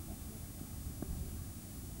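A cricket bat strikes a ball with a sharp knock.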